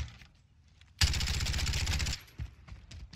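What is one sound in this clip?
An automatic rifle fires a rapid burst nearby.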